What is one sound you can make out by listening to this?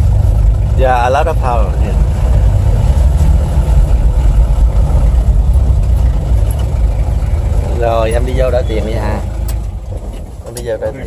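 An old 1955 Chevrolet engine rumbles while driving, heard from inside the car.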